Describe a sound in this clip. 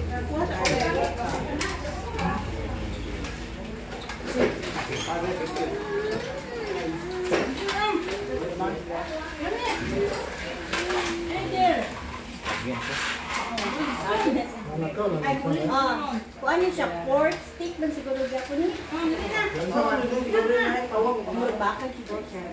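Serving spoons clink and scrape against dishes and plates.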